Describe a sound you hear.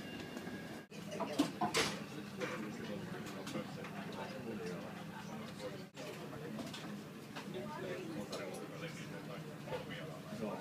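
Several men and women chatter indistinctly nearby.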